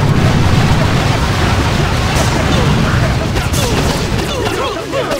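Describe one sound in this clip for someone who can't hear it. Gunfire and explosions rumble steadily.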